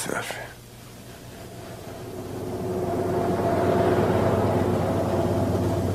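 A van drives closer with a rising engine hum.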